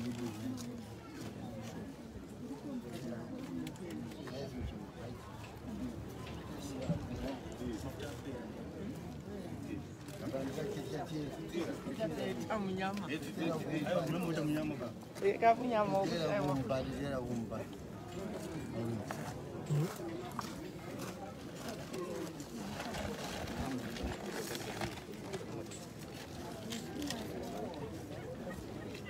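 A small crowd of men talk and chatter nearby outdoors.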